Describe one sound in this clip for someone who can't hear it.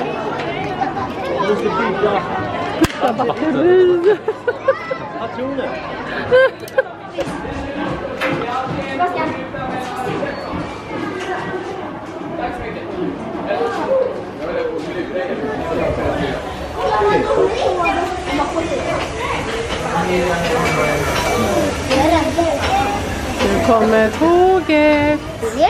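Children chatter and call out excitedly nearby.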